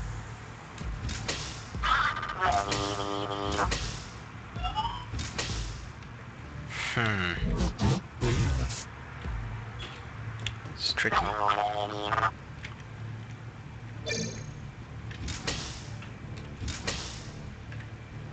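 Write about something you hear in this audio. Electronic game sound effects whoosh, buzz and beep in short bursts.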